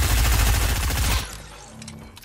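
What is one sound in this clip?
Rapid gunfire rings out close by.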